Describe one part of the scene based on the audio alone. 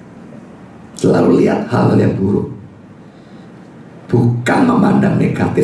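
A middle-aged man speaks calmly into a microphone, heard through a loudspeaker in a room.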